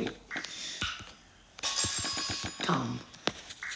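Game blocks are placed with short soft clicks.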